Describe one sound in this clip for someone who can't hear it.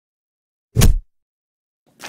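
Hands thump down on a wooden surface.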